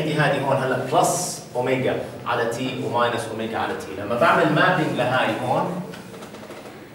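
A middle-aged man talks calmly and clearly, as if teaching, in a room with some echo.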